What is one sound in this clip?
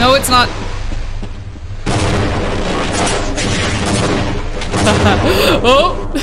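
A young woman talks with animation close to a headset microphone.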